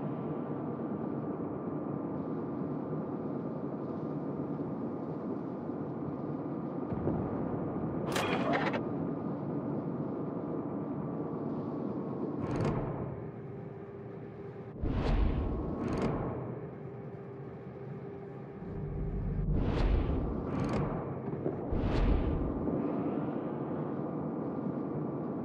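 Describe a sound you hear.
A warship's engine hums steadily over rushing water.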